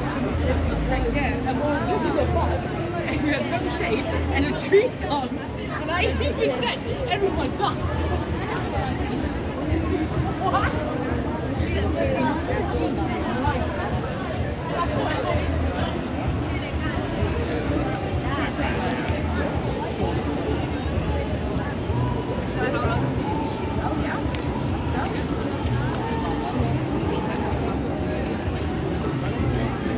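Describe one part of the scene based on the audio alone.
A busy crowd chatters and walks outdoors.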